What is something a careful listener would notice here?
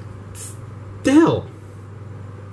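A young man gives a short high exclamation close to a microphone.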